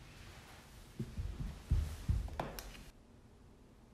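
Knees and hands thump on a wooden floor.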